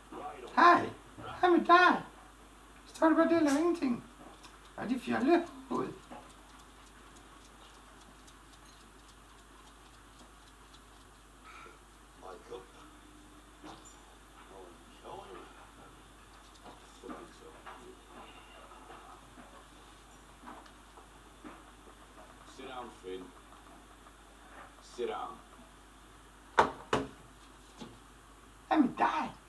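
A middle-aged man speaks loudly and with animation nearby.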